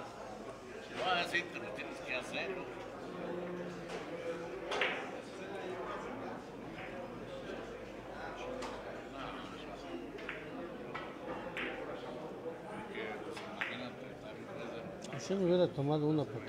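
Billiard balls click against each other and knock off the cushions.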